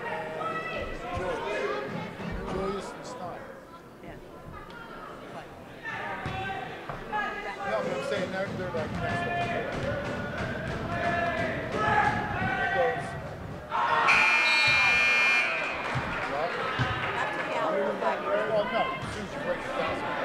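A crowd chatters in a large echoing gym.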